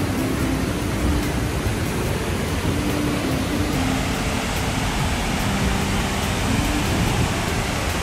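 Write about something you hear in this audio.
Water rushes and splashes over rocks close by.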